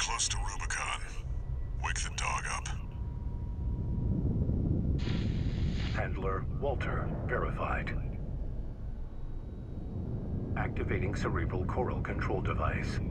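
A spacecraft's engines rumble low and steady.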